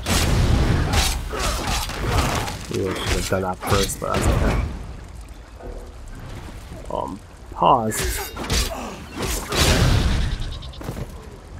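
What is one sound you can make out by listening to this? Swords clang and strike against armour in a fight.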